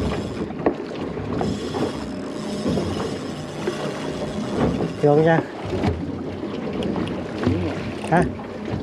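Water laps against the side of a boat outdoors.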